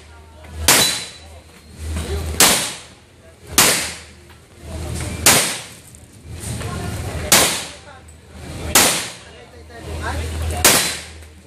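Gunshots ring out one at a time, each with an echo.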